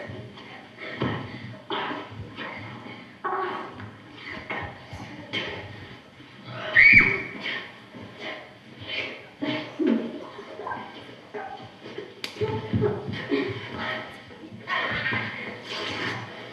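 Young actors speak and call out with animation.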